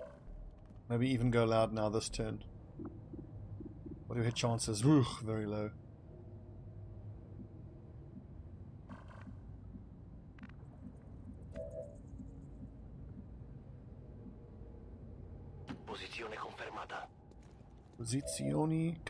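A man talks calmly into a close microphone, in short bursts.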